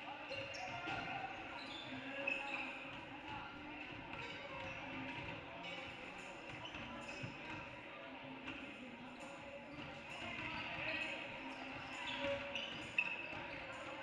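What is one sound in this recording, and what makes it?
Basketballs bounce on a wooden court, echoing in a large hall.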